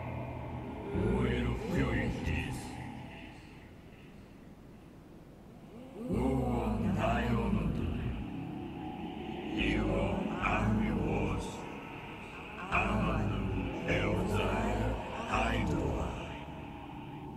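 A man speaks slowly and gravely, with pauses.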